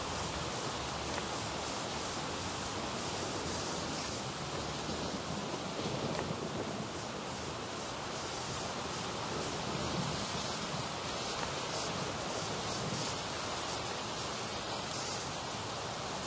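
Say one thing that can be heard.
Footsteps run across a hard wet floor.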